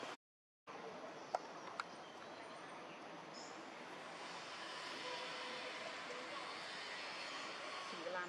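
A small monkey chews and nibbles on food.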